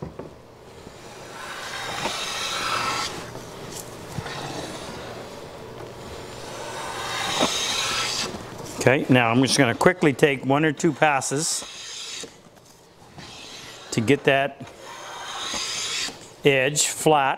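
A hand plane shaves wood in long, hissing strokes.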